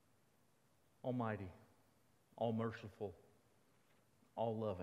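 A man speaks calmly into a microphone in a large, echoing hall.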